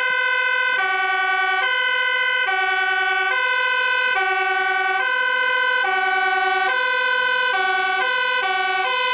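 A fire engine's two-tone siren blares loudly, alternating between high and low notes.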